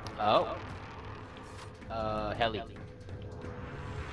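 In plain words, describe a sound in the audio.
Boots clank on the rungs of a metal ladder.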